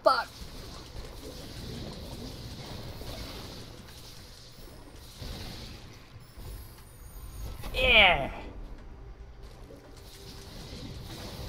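Magical energy bursts crackle and whoosh.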